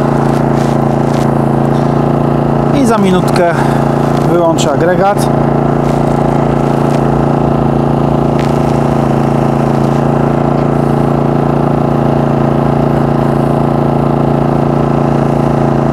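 A small generator engine hums steadily close by.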